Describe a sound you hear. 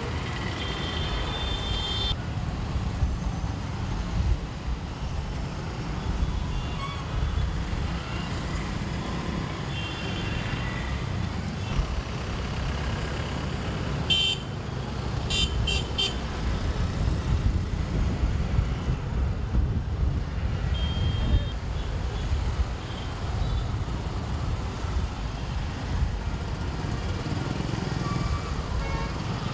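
Horns honk now and then in busy traffic.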